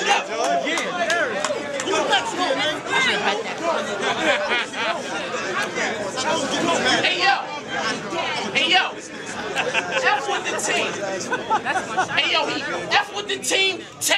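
A man raps loudly and with animation, close by.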